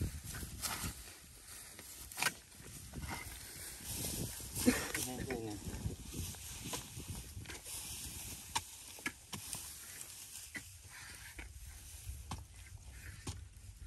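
Metal blades chop and thud into wet soil, again and again.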